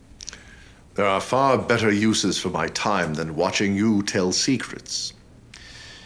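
A second man speaks slowly and menacingly, close by.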